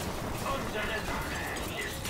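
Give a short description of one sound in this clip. A gun fires a shot.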